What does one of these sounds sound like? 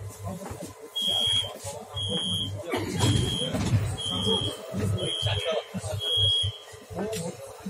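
A door warning chime beeps repeatedly.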